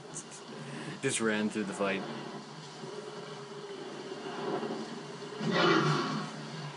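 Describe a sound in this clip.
A dinosaur shrieks and roars through a television speaker.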